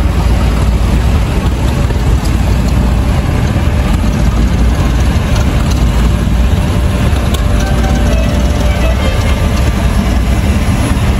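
A large tractor engine rumbles loudly as it drives slowly past up close.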